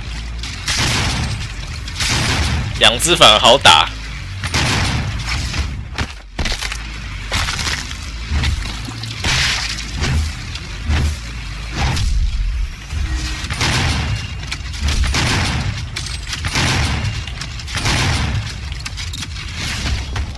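Gunfire and explosions boom repeatedly in a video game.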